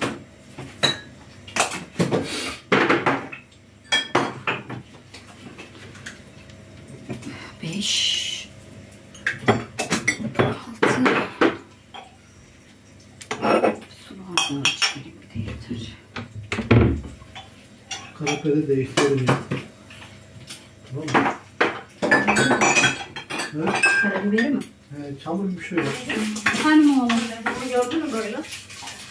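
Dishes and utensils clatter and knock.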